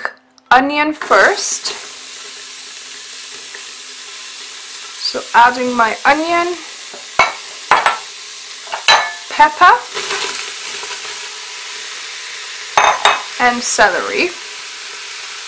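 Chopped vegetables sizzle in a hot pot.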